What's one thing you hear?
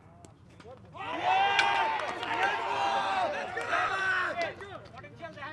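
Several men shout and cheer loudly outdoors.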